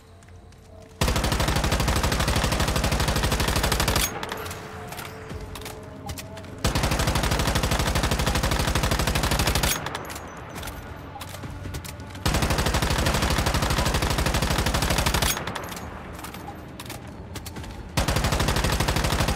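A rifle fires in long rapid bursts.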